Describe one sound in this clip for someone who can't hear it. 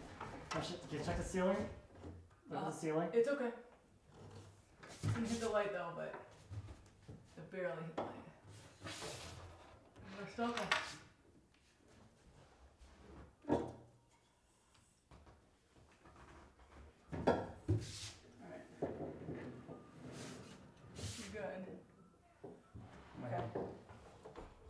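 A wooden cabinet scrapes and knocks as it is tipped upright.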